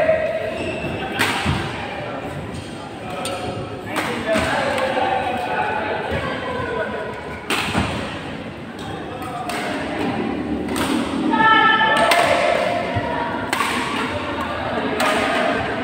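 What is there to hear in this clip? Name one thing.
Young men call out and talk across the court.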